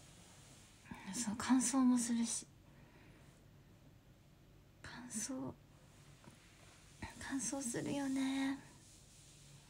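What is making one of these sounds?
A young woman speaks softly and close to a microphone, in short bursts.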